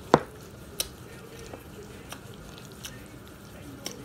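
A knife scrapes softly across toasted bread.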